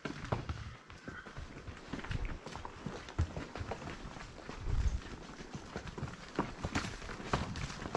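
Horse hooves clop and crunch on a dirt trail.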